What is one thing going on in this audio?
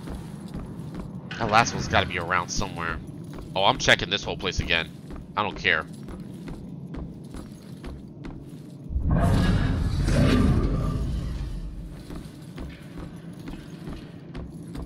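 Footsteps creak on a wooden floor.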